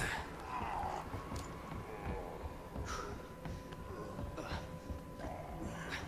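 Footsteps thud on a wooden floor.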